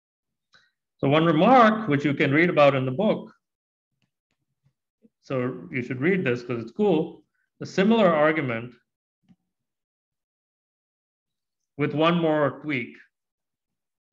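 A man speaks calmly through a microphone, explaining with pauses.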